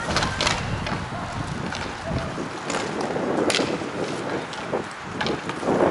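Skates and shoes scrape across the court.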